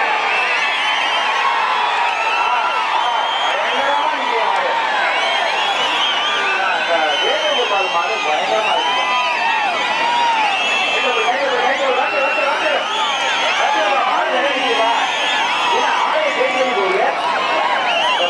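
A large crowd of men cheers and shouts loudly outdoors.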